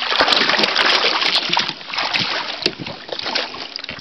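Water splashes as a dog is hauled out of it.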